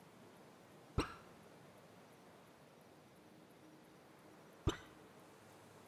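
A short menu swoosh sounds as a page turns.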